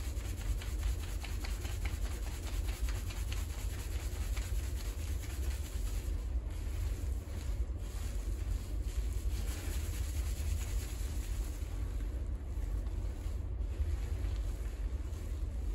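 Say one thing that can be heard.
Hands squish and rub through foamy lather close by.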